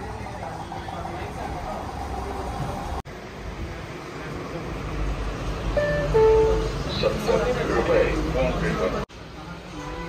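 A crowd of diners murmurs in a busy room.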